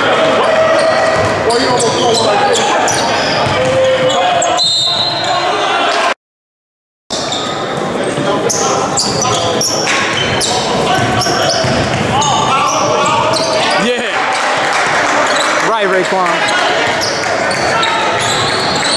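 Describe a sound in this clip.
A crowd murmurs and cheers in an echoing gym.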